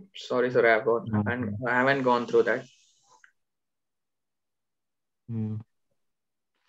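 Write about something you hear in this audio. A young man speaks calmly into a microphone, as over an online call.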